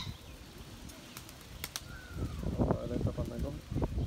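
A pigeon flaps its wings as it takes off.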